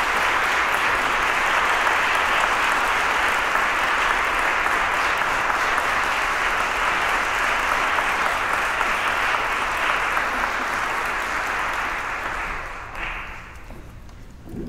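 A large audience applauds in an echoing hall, then the clapping dies away.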